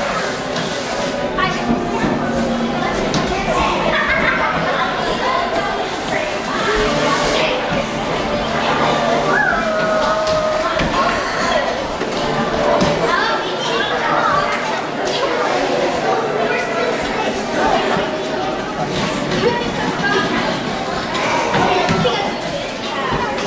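Young performers speak and call out on a stage in a large echoing hall.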